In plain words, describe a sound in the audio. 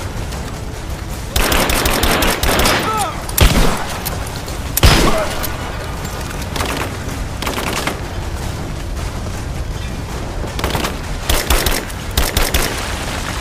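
Rifle gunfire rattles in rapid bursts.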